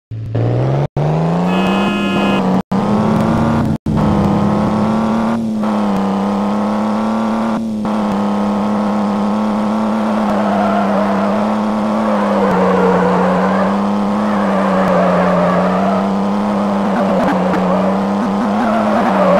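An engine revs up quickly and then drones steadily at high speed.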